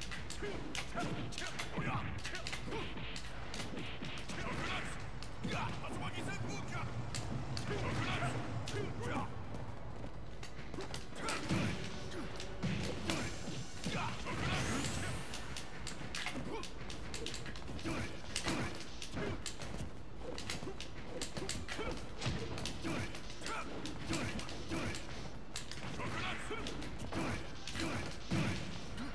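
Punches, kicks and blasts thud and crack.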